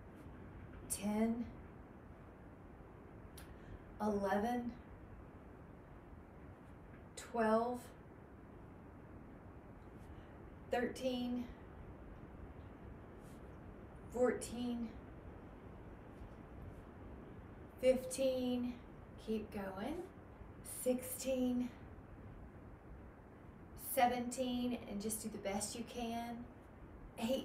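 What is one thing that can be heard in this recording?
A young woman speaks in short, calm phrases close to the microphone.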